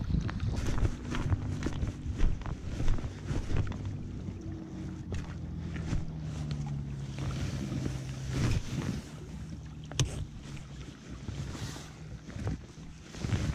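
Small waves lap against rocks at the shore.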